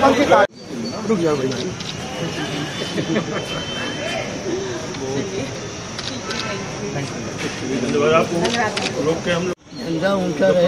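A crowd of men and women chatter close by.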